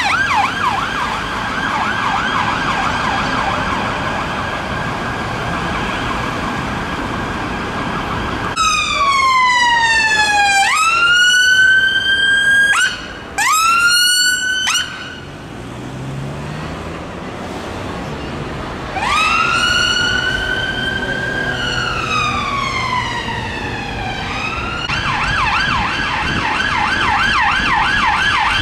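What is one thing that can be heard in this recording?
Car engines hum in passing traffic.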